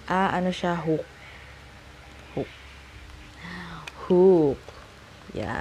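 A young woman speaks close by in short bursts.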